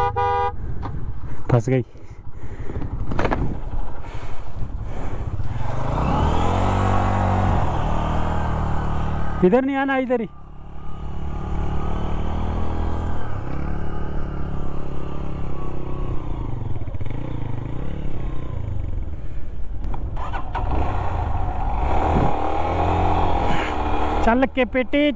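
A motorcycle engine idles and revs up close.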